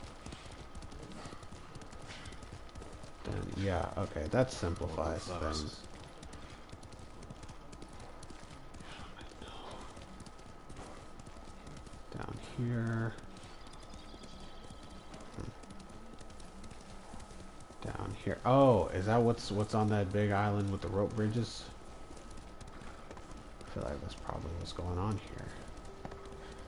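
A horse gallops with thudding hoofbeats on a dirt path.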